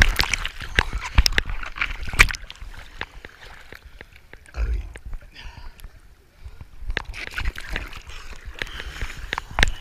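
Small waves lap against a surfboard.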